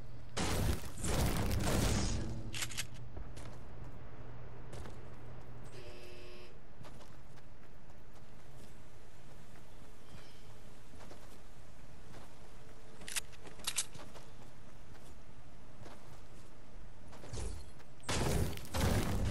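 A pickaxe chops into a tree trunk with heavy thuds.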